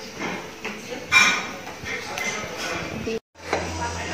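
Chopsticks click against plates and bowls.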